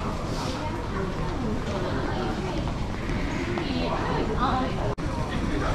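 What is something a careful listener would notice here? A crowd of people murmurs and chatters in an echoing passage.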